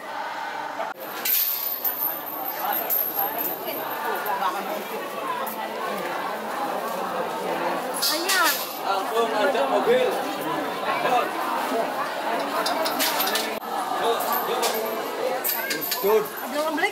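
A large crowd murmurs and talks in an echoing hall.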